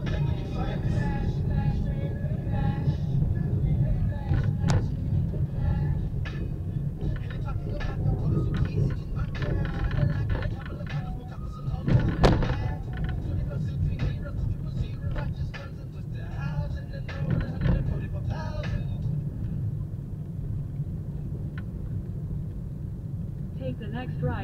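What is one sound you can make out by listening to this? A car engine hums steadily inside the cabin as the car drives.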